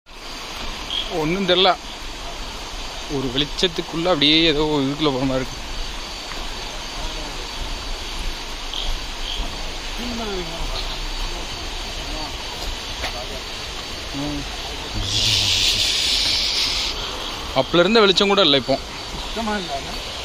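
Young men talk and call out with animation.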